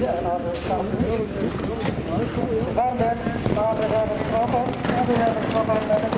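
Horses' hooves thud on grass as trotters pass close by.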